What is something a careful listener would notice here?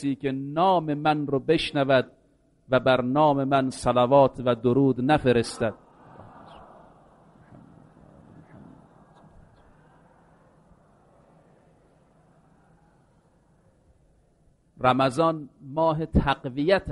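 A man speaks calmly into a microphone.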